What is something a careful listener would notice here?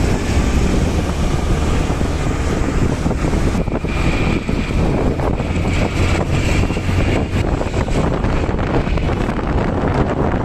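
Auto rickshaw engines putter nearby.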